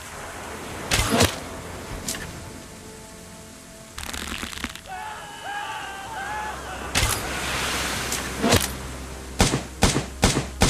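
An arrow thuds into a body.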